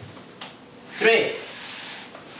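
A man makes a short voiced sound with effort.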